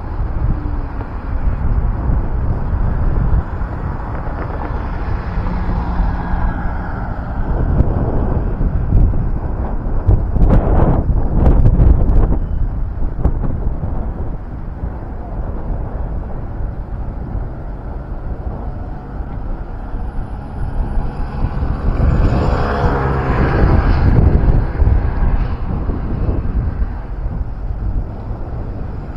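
Wind blows outdoors, rumbling steadily.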